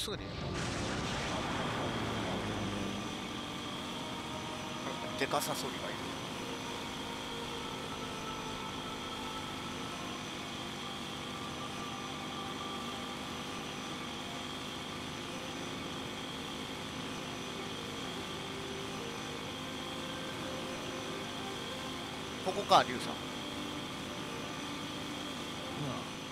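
A hover bike's engine hums steadily as it speeds along.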